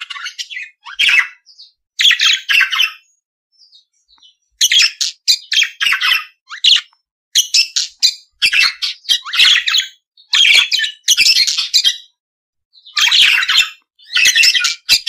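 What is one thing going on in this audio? Budgerigars chirp and warble in quick bursts.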